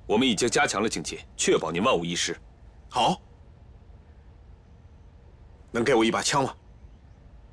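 A young man speaks firmly up close.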